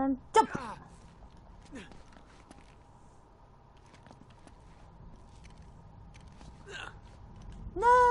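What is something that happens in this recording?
Footsteps scrape softly on rock.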